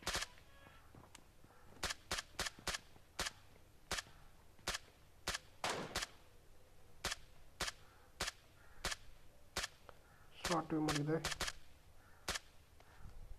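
Rifle shots crack one by one.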